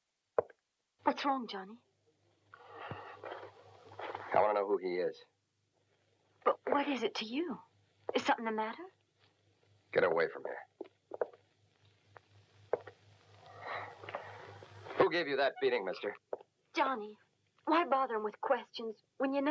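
A young woman speaks softly and urgently.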